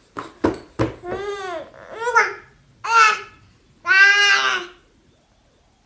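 A baby squeals and babbles excitedly.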